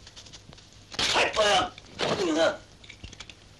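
A young man cries out in pain.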